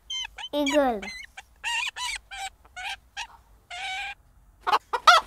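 An eagle gives high, piercing cries.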